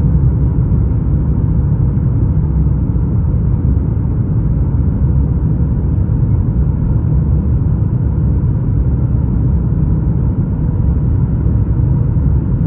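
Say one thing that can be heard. Jet engines roar steadily in a loud, deep rumble heard from inside an airliner cabin.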